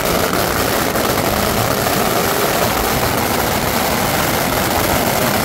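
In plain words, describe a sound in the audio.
Strings of firecrackers explode in a loud, rapid, continuous crackle close by.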